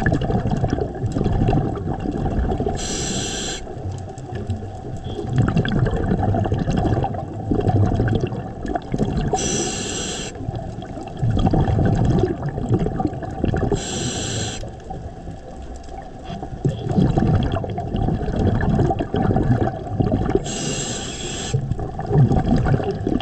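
Water churns and rumbles close by, muffled as if heard underwater.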